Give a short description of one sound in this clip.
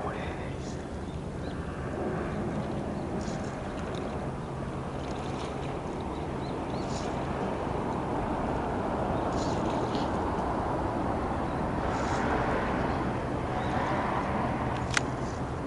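Water laps gently against a stone edge.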